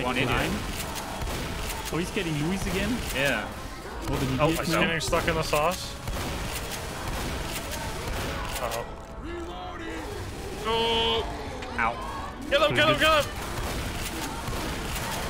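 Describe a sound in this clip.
A shotgun fires loud blasts.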